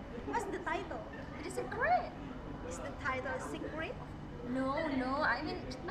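Another young woman talks close by.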